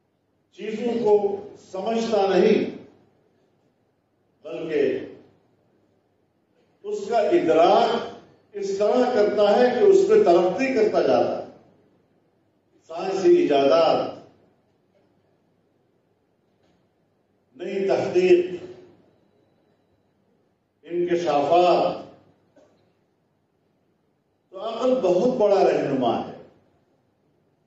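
An elderly man speaks slowly into a microphone, in short phrases with pauses.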